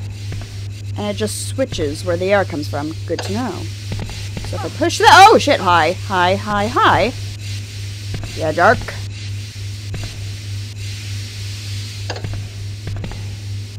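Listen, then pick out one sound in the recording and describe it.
Steam hisses steadily from a leaking pipe.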